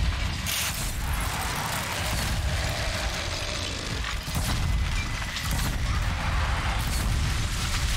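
Fiery blasts burst and crackle.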